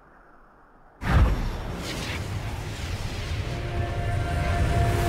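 A game character's teleport spell hums and shimmers with a sudden rush.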